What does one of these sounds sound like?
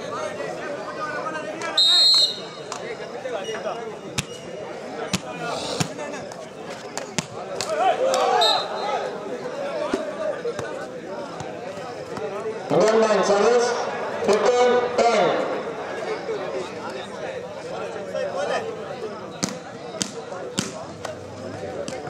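A crowd of spectators murmurs and cheers.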